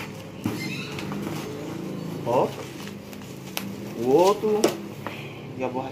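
Plastic wrapping crinkles as a package is lifted out.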